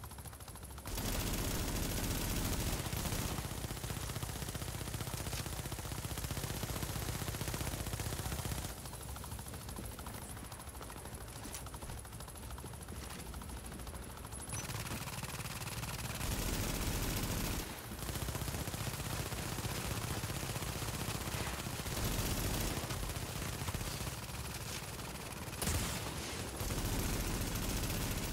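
A helicopter's rotor thumps loudly overhead.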